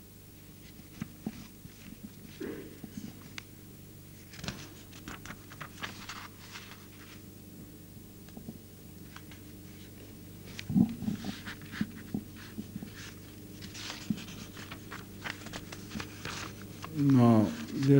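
An elderly man speaks slowly and calmly into a microphone.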